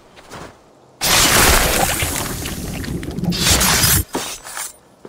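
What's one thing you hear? A blade stabs into flesh with a wet squelch.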